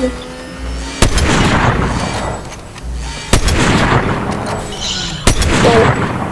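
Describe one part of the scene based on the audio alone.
Gunshots bang out sharply, one at a time.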